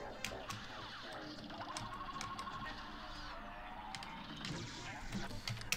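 Video game gunfire pops rapidly.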